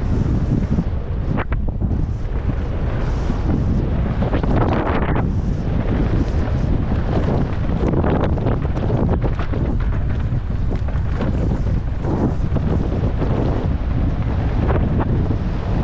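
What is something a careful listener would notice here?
Wind rushes loudly past a fast-moving rider.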